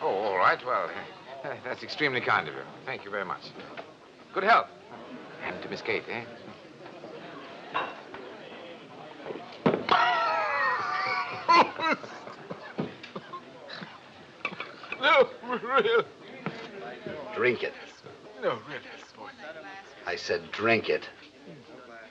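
A second man talks cheerfully.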